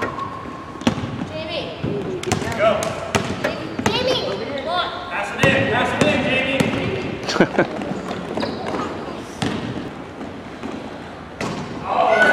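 Children shout and call out excitedly in a large echoing gym.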